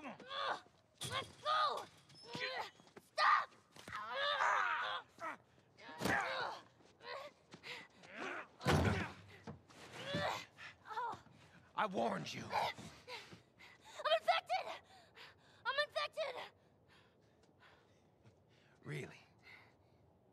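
A man shouts roughly.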